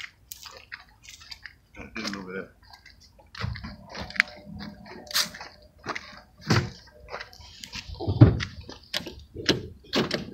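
Footsteps crunch over dry leaves.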